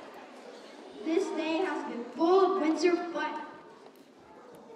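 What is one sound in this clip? A young boy speaks calmly into a microphone.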